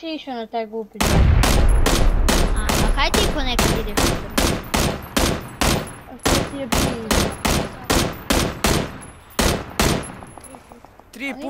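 A rifle fires a rapid series of loud shots.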